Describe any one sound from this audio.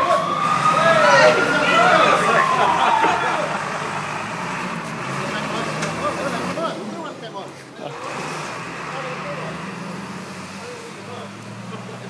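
A fire truck's engine rumbles steadily.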